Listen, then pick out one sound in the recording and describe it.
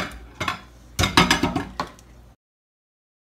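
A spoon clinks against a glass bowl.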